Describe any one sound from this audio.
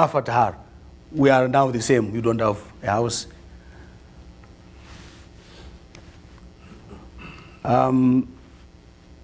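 A man speaks with pauses through a microphone.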